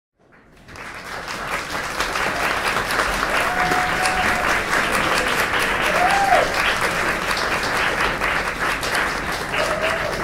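A crowd chatters and cheers loudly in a large echoing room.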